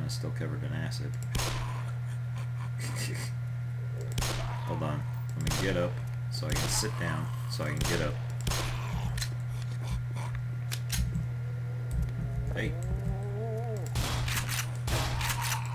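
A gun fires repeated sharp shots.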